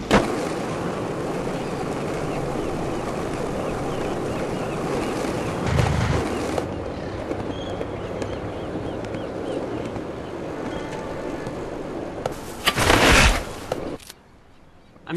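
Skateboard wheels roll steadily over pavement.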